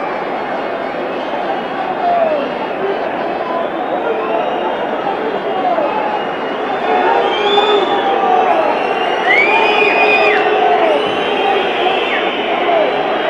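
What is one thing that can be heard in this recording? A large crowd cheers and roars loudly in an open stadium.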